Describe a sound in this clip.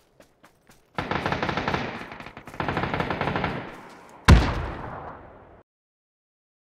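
A gun fires rapid bursts nearby.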